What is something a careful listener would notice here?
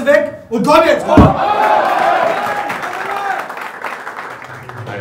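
A group of men clap their hands together.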